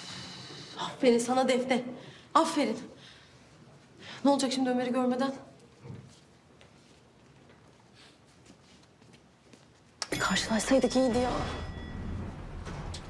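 A young woman speaks quietly and bitterly, close by.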